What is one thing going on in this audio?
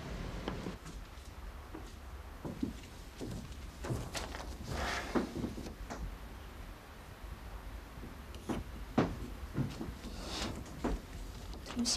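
Footsteps walk slowly across a wooden floor.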